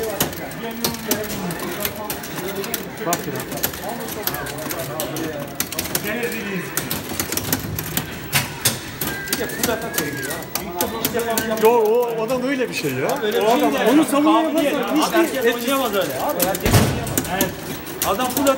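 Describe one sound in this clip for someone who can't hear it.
Punches and kicks thud and smack from an arcade game's speaker.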